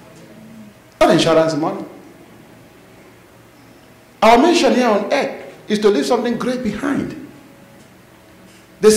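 A man speaks with emphasis into a microphone, in short bursts with pauses.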